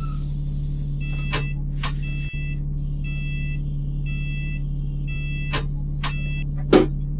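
A door warning chime beeps repeatedly.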